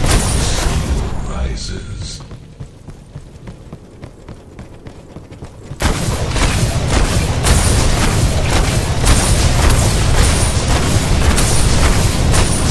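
Rapid gunfire and blasts crackle in a fantasy battle game.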